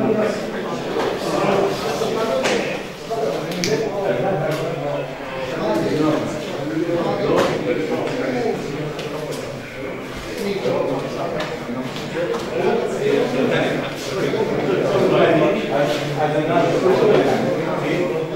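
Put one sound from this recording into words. Several men talk at once, making a steady murmur of voices in a room.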